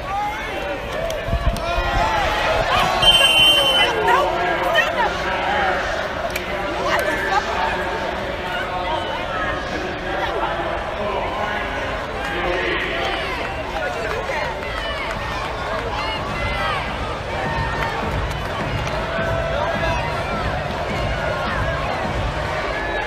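A large stadium crowd cheers and shouts throughout.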